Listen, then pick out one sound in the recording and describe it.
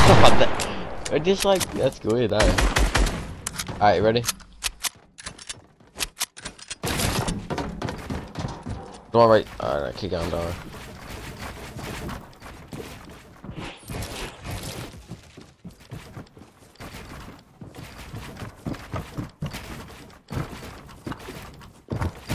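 Wooden walls and ramps are built with quick clattering clicks throughout.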